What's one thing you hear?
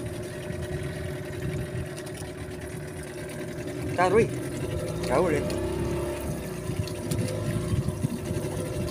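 Small waves lap against a wooden boat's hull.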